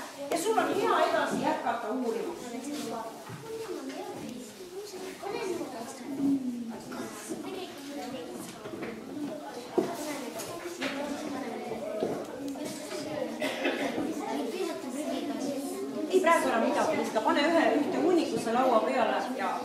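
Children talk and murmur among themselves.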